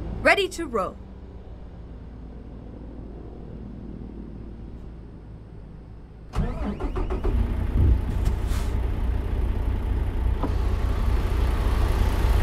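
A diesel truck engine idles with a low rumble.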